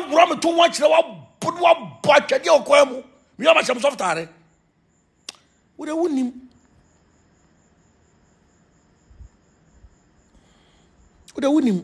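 A man speaks with emotion close to a phone microphone, pausing between phrases.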